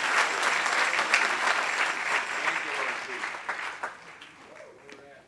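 A large crowd applauds loudly, then the clapping fades away.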